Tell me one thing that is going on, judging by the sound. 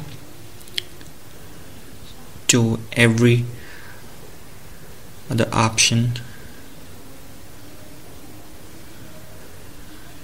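A finger taps softly on a phone touchscreen.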